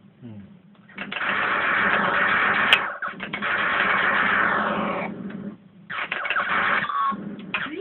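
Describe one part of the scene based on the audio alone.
An arcade game blasts loud noisy explosions.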